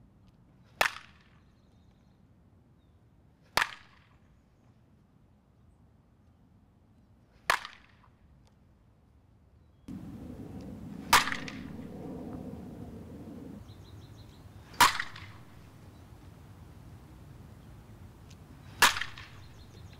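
A bat cracks sharply against a softball, again and again.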